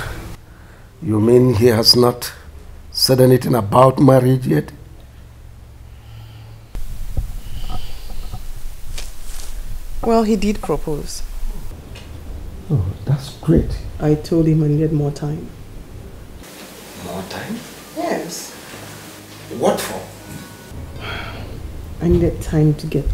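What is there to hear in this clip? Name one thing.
An elderly man speaks sternly nearby.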